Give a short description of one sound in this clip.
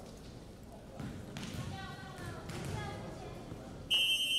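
Young women shout together in a large echoing hall.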